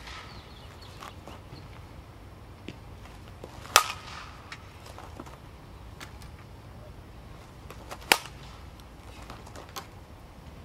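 A bat swishes through the air in repeated practice swings.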